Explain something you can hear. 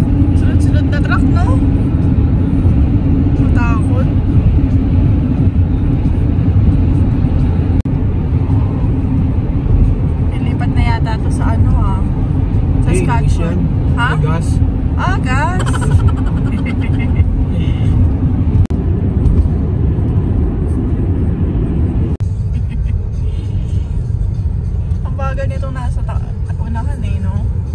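A car engine hums and tyres rumble steadily on a wet road, heard from inside the car.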